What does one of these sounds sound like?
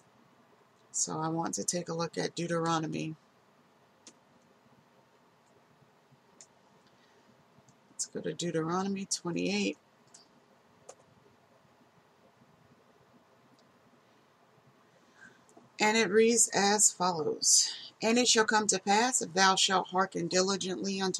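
A woman speaks calmly and closely into a microphone, with pauses.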